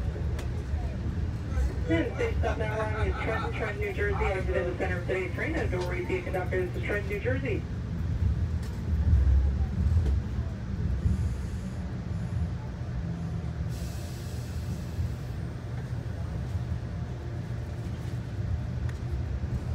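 Wheels clatter over rail joints.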